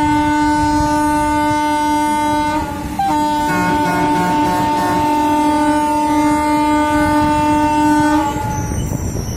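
A train horn blares loudly and steadily, with a short break.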